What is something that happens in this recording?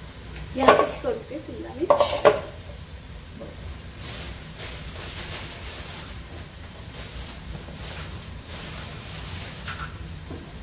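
Onions sizzle softly in a hot pot.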